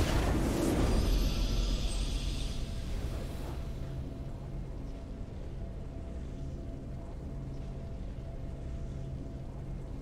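A victory fanfare swells and then settles into a low, steady hum of music.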